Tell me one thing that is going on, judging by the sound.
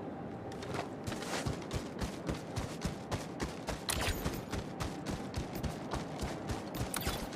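Heavy footsteps thud quickly and steadily over rough ground.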